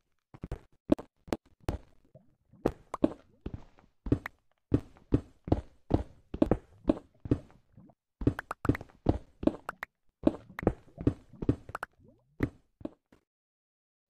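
A pickaxe chips at stone in quick, repeated knocks.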